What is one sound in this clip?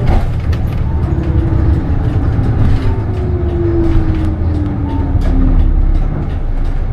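A bus engine whines, falling in pitch as the bus slows down.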